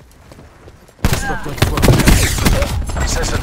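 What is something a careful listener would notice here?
A rifle fires a loud shot with a booming echo.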